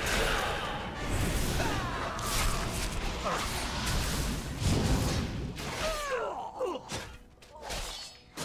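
Spell effects whoosh and crackle in a fierce fight.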